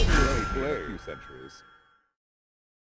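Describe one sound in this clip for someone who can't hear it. A sparkling burst of sound rings out with a short victory chime.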